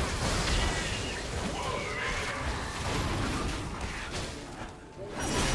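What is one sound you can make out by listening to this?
Video game combat effects clash and burst rapidly.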